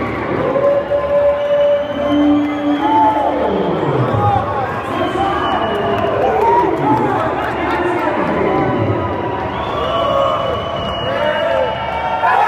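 A crowd of men cheers and shouts in a large echoing sports hall.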